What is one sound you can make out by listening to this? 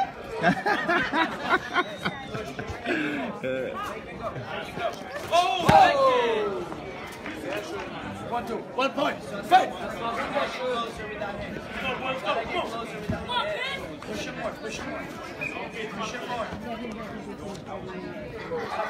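Sparring fighters' feet shuffle and thud on a mat.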